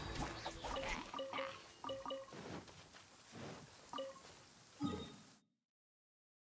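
Game pickup chimes ring as items are collected.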